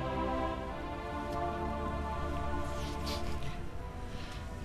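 Music plays with a sustained melody, then stops.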